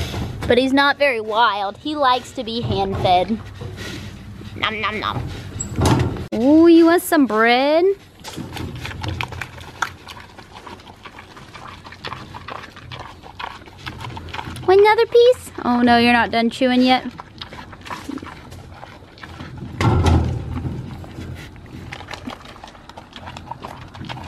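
A pig snuffles and grunts.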